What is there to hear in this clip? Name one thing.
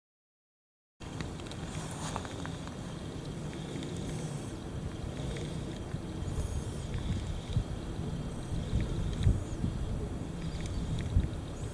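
Wind rumbles outdoors by the water.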